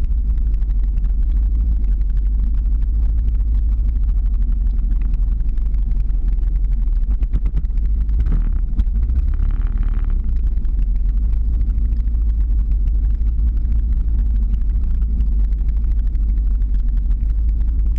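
Strong wind roars and buffets throughout.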